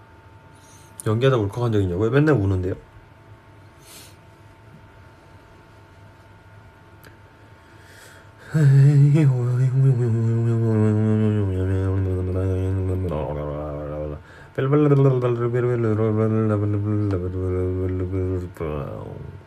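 A young man sings softly close to a phone microphone.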